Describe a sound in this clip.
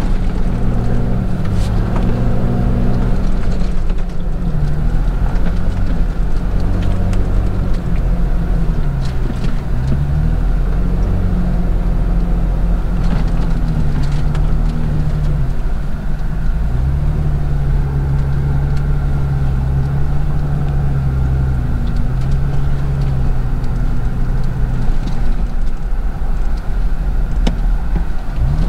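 A vehicle's engine drones from inside the cab as it drives over sand, the note rising and falling.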